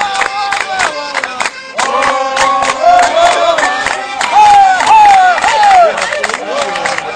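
Several people clap their hands in rhythm.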